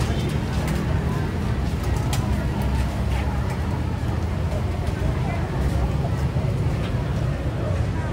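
Tongs clatter against a steaming pot of corn.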